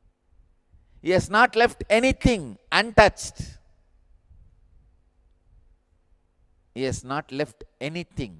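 A man speaks calmly and with animation into a microphone, in short bursts with pauses.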